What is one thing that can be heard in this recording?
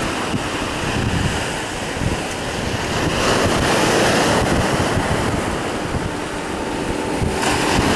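Waves break and wash against rocks close by.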